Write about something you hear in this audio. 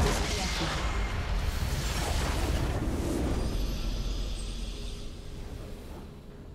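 A loud rumbling explosion bursts and slowly fades.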